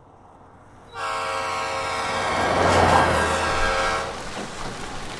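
A train rumbles across an elevated track.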